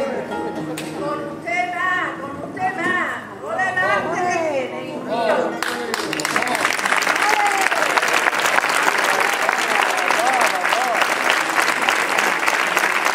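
An acoustic guitar is strummed and plucked quickly.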